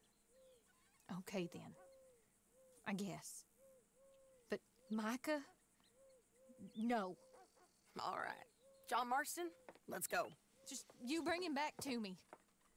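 A second woman answers calmly.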